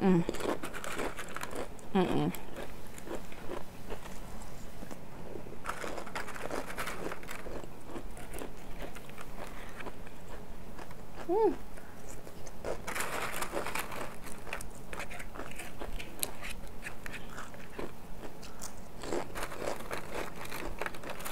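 A woman chews food noisily, close to a microphone.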